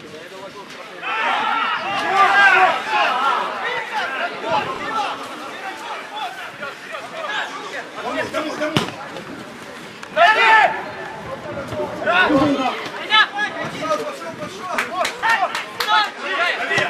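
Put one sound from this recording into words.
A small crowd cheers and shouts from a distance.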